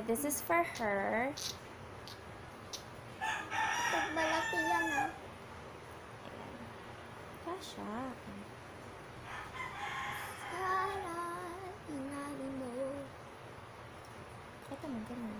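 A young woman talks close by, with animation.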